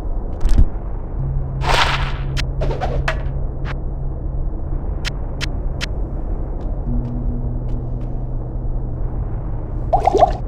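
Short clinks and clicks of items being picked up and moved sound several times.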